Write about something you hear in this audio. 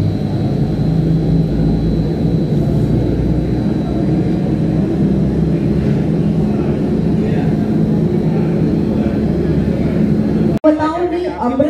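A crowd of men murmurs and chatters nearby.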